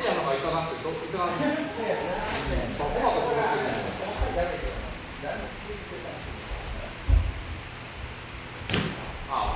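Feet thud and shuffle on a boxing ring floor.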